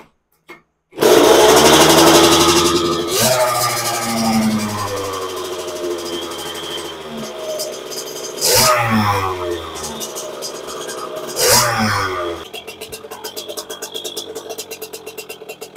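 A small motorbike engine starts and revs loudly, then idles with a rattling putter.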